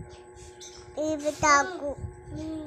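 A small child speaks in a high voice close by.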